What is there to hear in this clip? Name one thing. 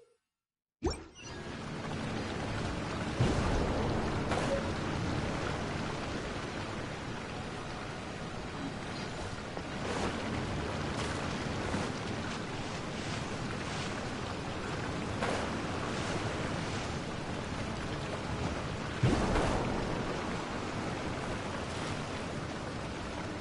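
Wind rushes steadily past a gliding game character.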